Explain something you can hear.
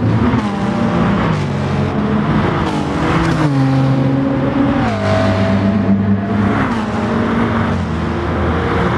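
Racing car engines roar loudly, rising and falling in pitch as the cars shift gears.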